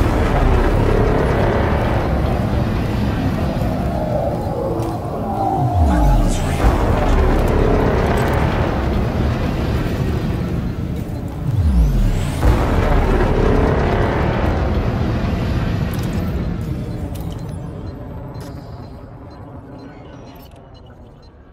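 A spaceship's engines rumble low and steady, fading away at the end.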